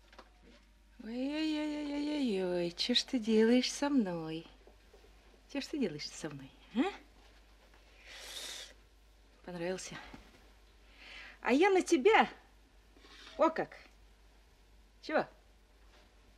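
An elderly woman talks gently.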